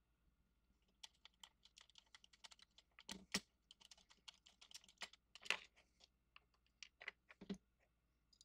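Small plastic parts click and tap against a hard surface as they are handled.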